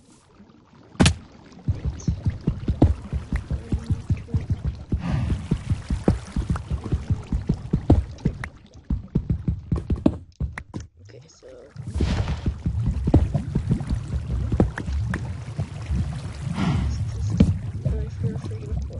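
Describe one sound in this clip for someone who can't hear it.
A pickaxe taps rapidly against stone.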